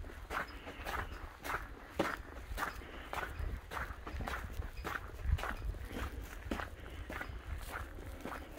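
Footsteps crunch steadily on a snowy road.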